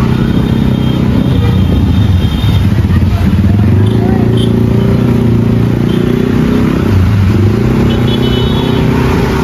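A large bus engine rumbles loudly nearby.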